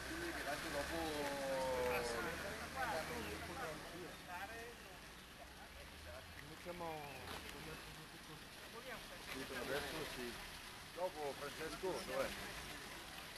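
Several men talk outdoors in animated voices.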